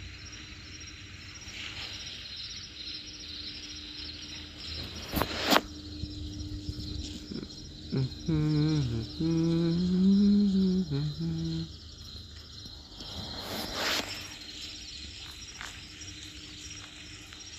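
An animal's paws pad softly over forest ground.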